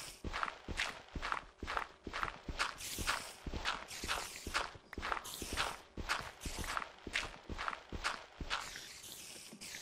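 Rapid knocking of a pick digging through stone repeats.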